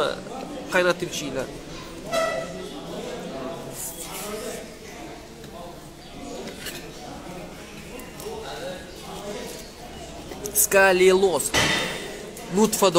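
A man speaks calmly, close up.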